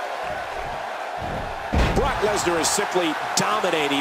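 A body slams heavily onto a ring mat.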